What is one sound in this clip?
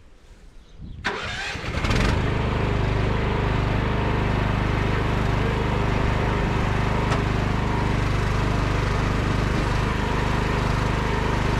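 An engine starts up and runs with a steady loud drone.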